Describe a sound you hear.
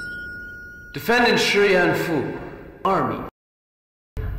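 A man speaks firmly and clearly, close by.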